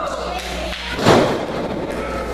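A wrestler's kick lands with a loud smack.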